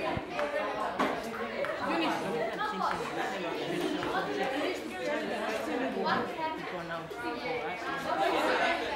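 A woman speaks calmly and steadily, close by.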